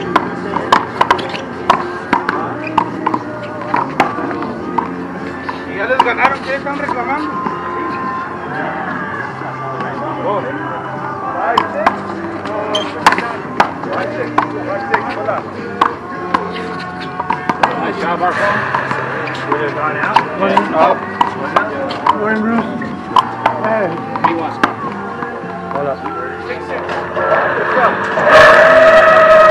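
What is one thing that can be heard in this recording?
A ball slaps sharply against a wall and hands, again and again.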